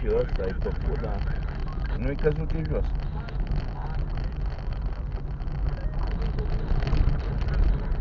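Tyres crunch and rattle over a bumpy dirt road.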